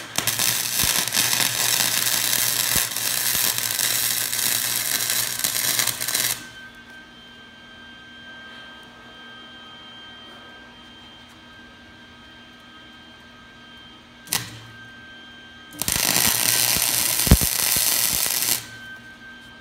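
An arc welder crackles and buzzes loudly.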